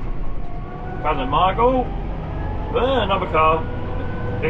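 A man speaks calmly and close by, in short bursts.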